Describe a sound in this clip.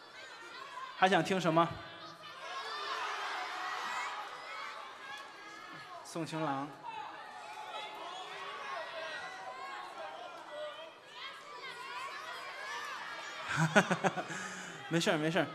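An audience laughs loudly and claps.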